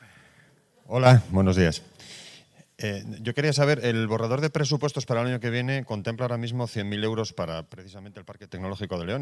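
A middle-aged man speaks steadily into a microphone.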